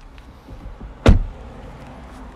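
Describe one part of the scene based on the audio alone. A car door shuts with a solid thud.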